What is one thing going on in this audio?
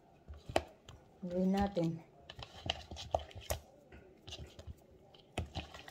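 A seasoning shaker rattles and taps over a bowl.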